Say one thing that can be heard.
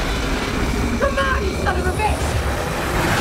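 A woman speaks through gritted teeth, tense and close.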